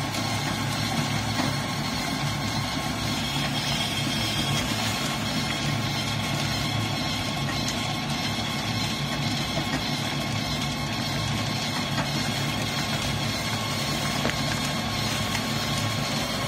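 Hard pellets rattle as they slide down a wire mesh chute into a bucket.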